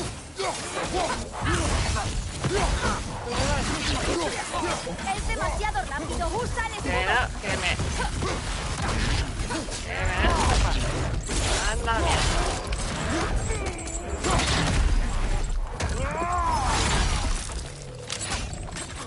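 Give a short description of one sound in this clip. Heavy blows thud and clang in a fierce fight.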